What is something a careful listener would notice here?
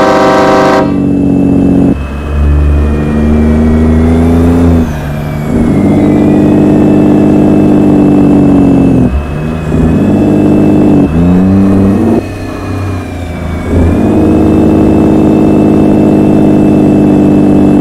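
A truck's engine drones and rises and falls in pitch as the gears shift.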